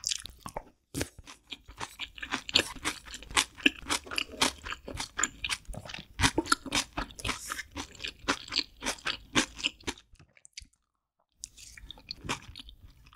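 A young woman chews and slurps food loudly and close up.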